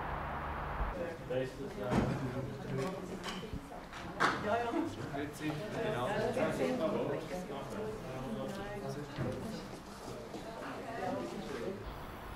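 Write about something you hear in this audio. A group of men and women chatter in the background.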